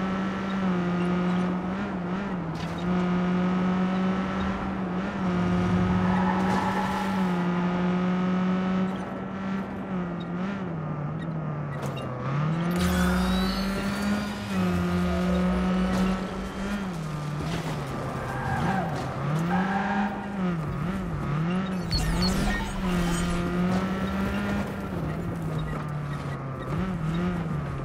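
A small car engine hums steadily, its pitch rising and falling as it speeds up and slows down.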